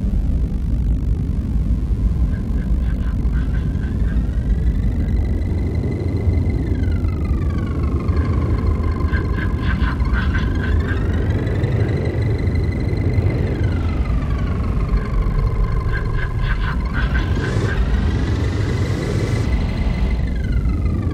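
Strong wind roars steadily against the microphone outdoors.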